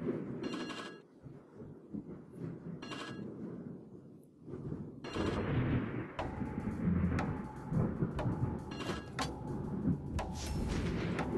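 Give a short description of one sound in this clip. Water rushes and splashes along a moving ship's hull.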